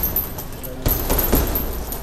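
A boxer punches a heavy bag.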